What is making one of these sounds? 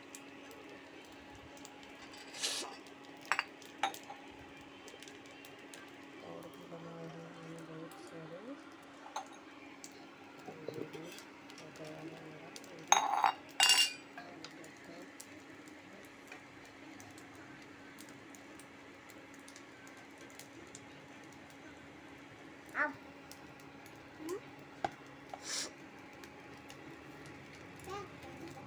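A spatula scrapes and taps against a frying pan.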